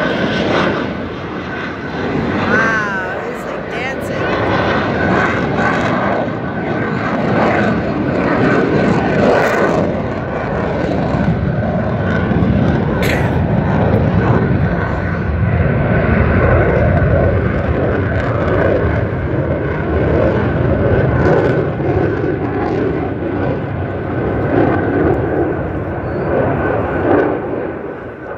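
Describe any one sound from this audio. A jet engine roars overhead.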